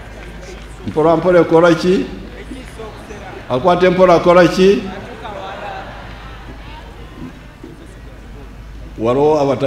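An elderly man speaks slowly and forcefully through a microphone and loudspeakers, in pauses.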